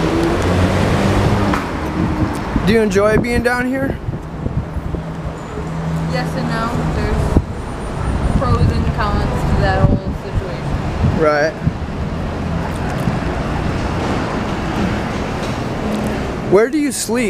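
A woman talks calmly and close by, outdoors.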